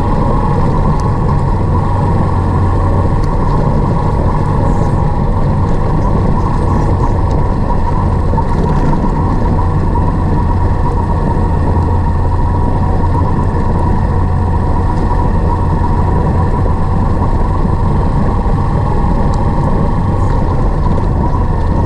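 Tyres crunch over a rough gravel track.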